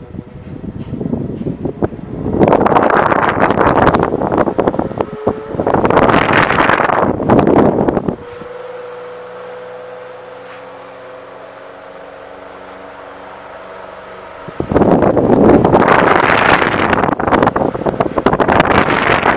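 An electric fan motor hums steadily.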